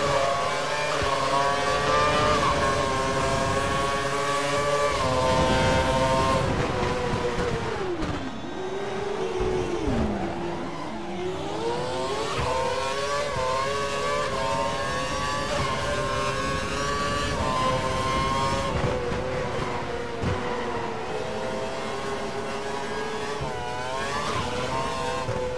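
A racing car engine screams at high revs, rising through the gears and dropping as it brakes.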